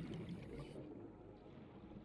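Bubbles gurgle and rise underwater.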